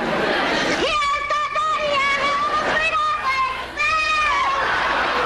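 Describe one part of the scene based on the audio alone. A young man laughs loudly nearby.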